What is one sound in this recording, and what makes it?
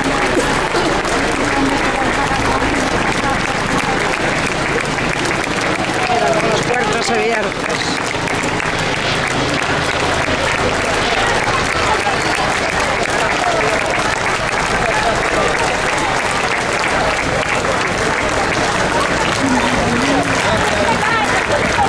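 A large crowd applauds and cheers outdoors.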